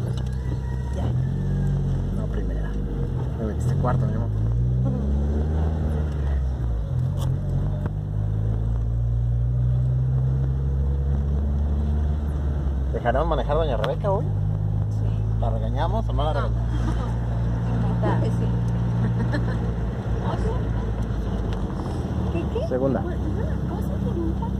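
A car engine hums steadily from inside the car, rising and falling in pitch as it drives.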